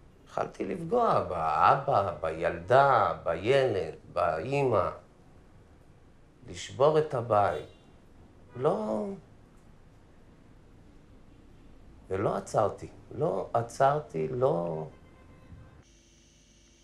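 A middle-aged man speaks slowly and with emotion, close by, pausing often.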